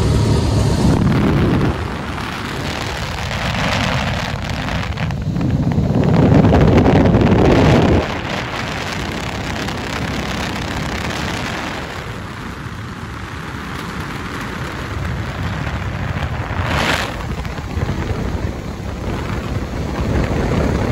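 Wind rushes loudly past, rising and falling.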